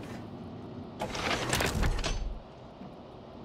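A metal cabinet door rattles and clanks.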